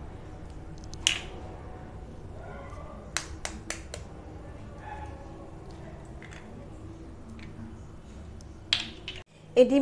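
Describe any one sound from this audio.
An egg cracks against a bowl's rim.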